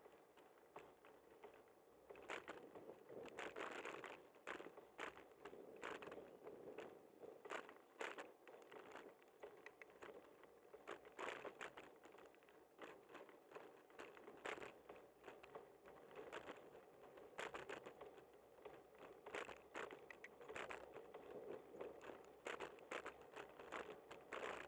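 A vehicle drives steadily along a paved street.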